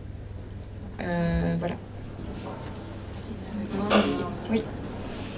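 A young woman speaks hesitantly into a microphone.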